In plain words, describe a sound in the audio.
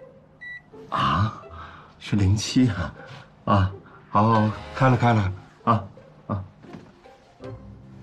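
A man talks on a phone close by, cheerful and lively.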